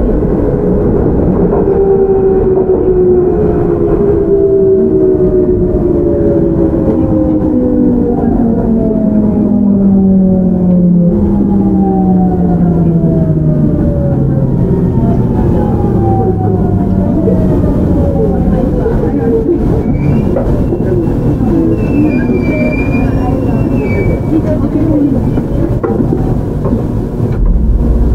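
A train rumbles heavily over the rails.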